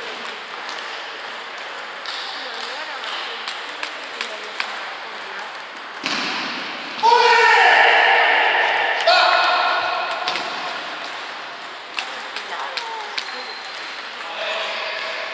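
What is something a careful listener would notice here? A ping-pong ball clicks sharply against paddles and a table.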